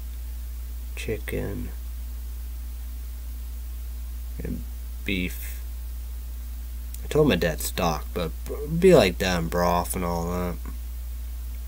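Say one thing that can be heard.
A young man speaks casually in short bursts, close to the microphone.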